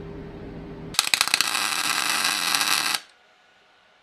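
A welding arc crackles and sizzles loudly.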